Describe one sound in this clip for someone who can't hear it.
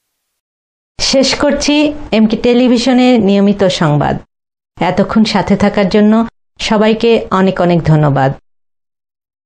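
A young woman reads out the news calmly and clearly into a microphone.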